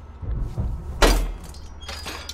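Bolt cutters snap through a metal padlock with a sharp clank.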